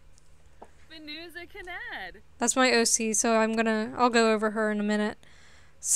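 A young woman talks animatedly into a microphone, close by.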